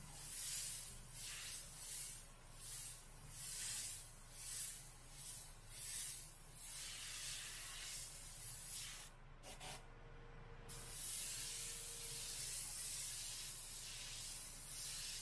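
An airbrush hisses in short bursts, then more steadily.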